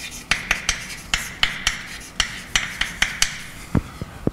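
Chalk taps and scrapes rapidly on a blackboard.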